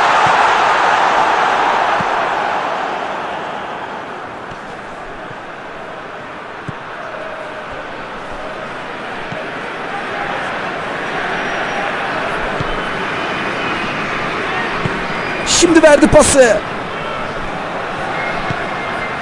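A large stadium crowd roars steadily, loudest at first and then settling to a murmur.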